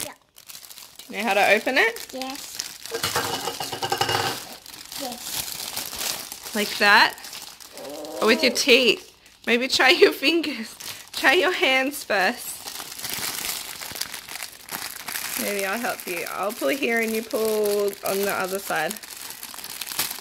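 A plastic bag crinkles.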